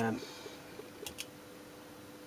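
A small plug clicks into a socket.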